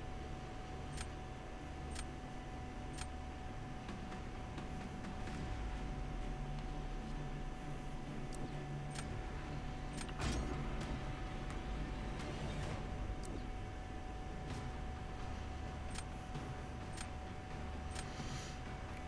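A game's countdown ticks softly.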